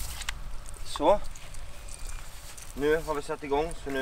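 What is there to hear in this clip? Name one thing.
A man speaks casually nearby outdoors.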